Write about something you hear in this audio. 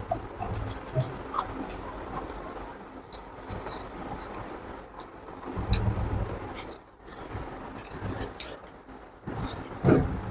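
A young man chews food noisily close by.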